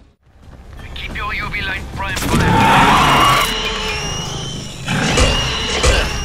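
A monster growls and snarls loudly.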